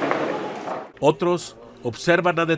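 A man speaks close by.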